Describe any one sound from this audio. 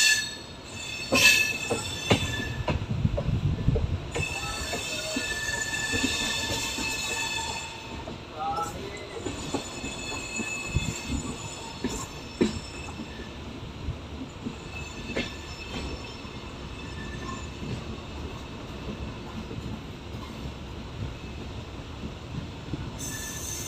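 A train rumbles along the tracks with wheels clacking over the rail joints.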